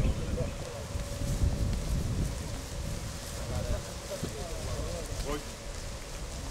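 Footsteps shuffle slowly on grass and dirt.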